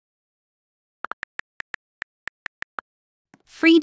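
Soft keyboard clicks tick quickly as someone types.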